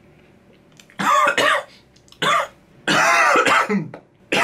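A young man coughs hard.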